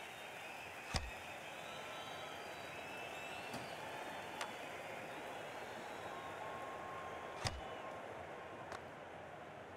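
A hockey puck strikes with sharp cracks.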